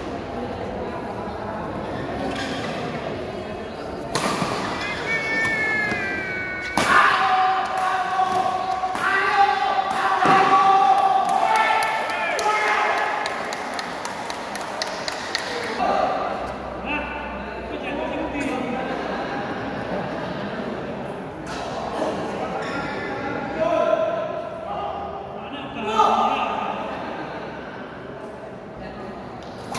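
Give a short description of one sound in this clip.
A crowd of spectators chatters and shouts in a large echoing hall.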